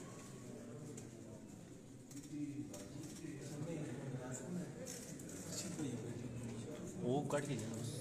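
A man speaks close to the microphone.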